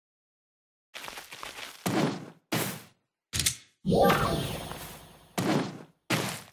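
A magical spell bursts with a loud whoosh.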